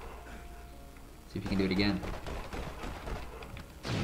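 A sniper rifle fires a sharp shot.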